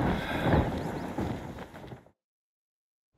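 Wind rushes loudly past a figure gliding through the air.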